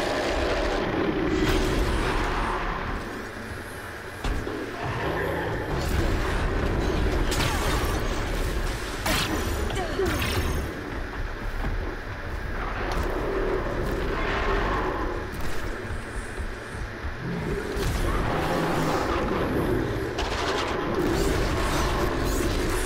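A large machine creature roars and stomps.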